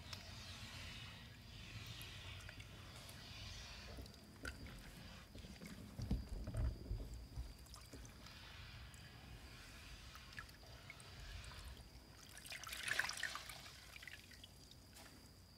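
A wet cloth scrubs and swishes through water.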